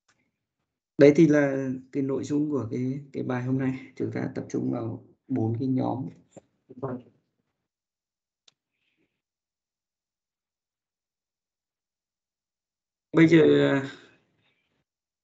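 A man talks calmly through an online call, in short bursts with pauses.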